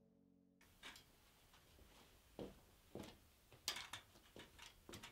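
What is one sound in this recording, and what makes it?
Footsteps crunch slowly on a gritty floor in an echoing tunnel.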